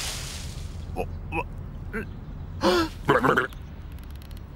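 Birds squawk and flap their wings.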